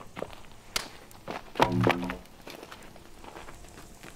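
A heavy log thuds onto the ground.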